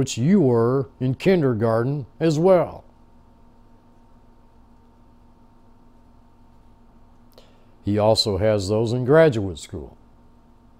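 An elderly man speaks calmly and close through a microphone, pausing between phrases.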